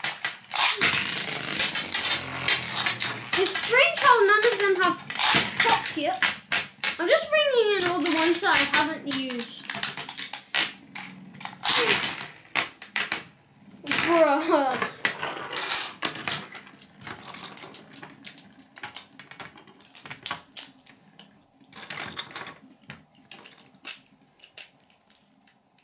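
Spinning tops clatter and clink as they knock into each other.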